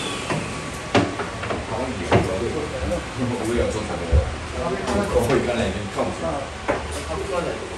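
Wood knocks sharply against wood.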